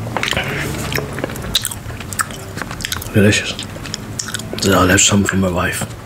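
A man chews food close to a microphone.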